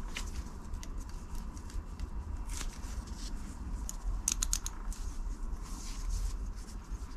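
Gloved hands rustle and crinkle.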